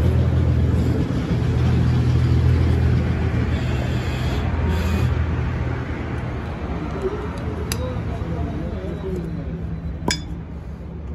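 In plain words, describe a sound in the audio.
A metal jack lever clanks as hands handle a bottle jack.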